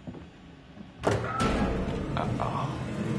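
A door swings open with a loud bang.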